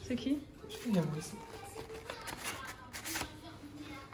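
Paper crinkles as a wrapped bouquet is handled.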